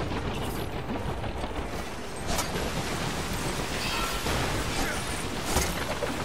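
Small plastic pieces clatter and scatter across the ground.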